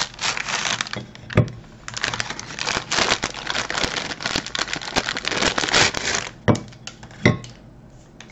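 A biscuit clicks onto a ceramic plate.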